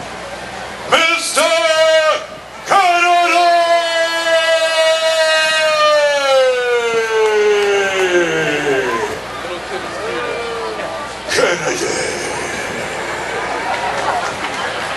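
A young man raps loudly into a microphone over loudspeakers.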